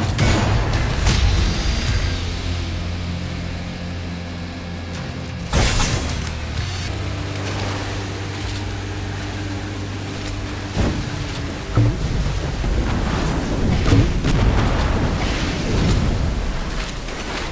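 A small boat engine hums steadily.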